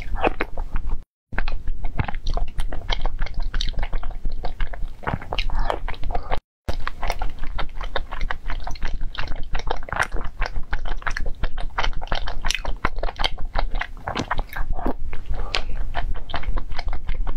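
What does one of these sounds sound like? A wooden spoon scrapes inside a glass bowl.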